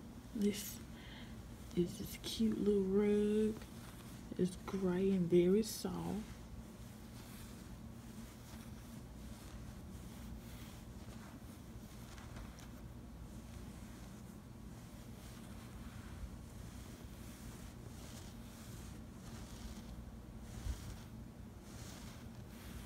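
A hand rubs softly through a shaggy rug.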